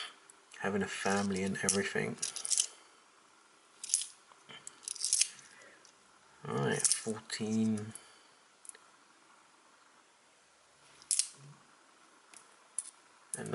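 Metal coins clink softly against each other.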